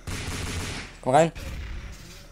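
A zombie groans loudly.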